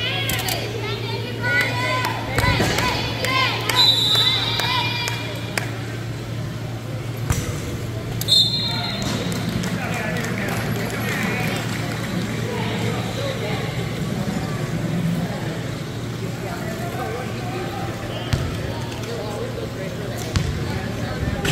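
Power wheelchairs hum as they roll across a large echoing gym floor.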